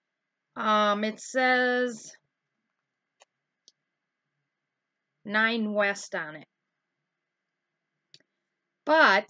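A middle-aged woman talks calmly close to the microphone.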